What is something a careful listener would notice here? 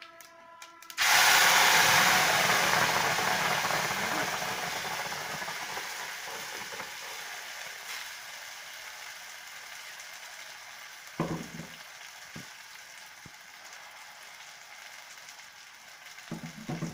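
Liquid pours into a hot pan with a loud hiss that slowly fades to a gentle simmer.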